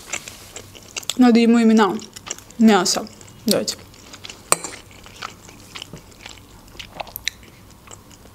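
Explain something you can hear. A fork clinks against a glass bowl.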